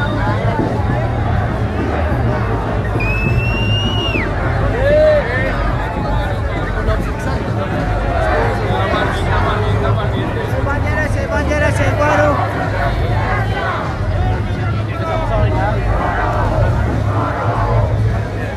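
A large crowd chatters and chants loudly outdoors.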